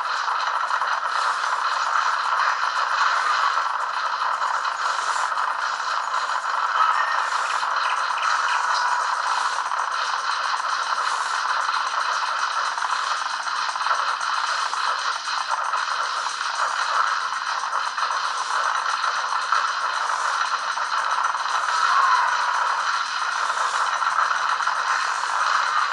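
Game battle sounds of gunfire and explosions crackle steadily through small speakers.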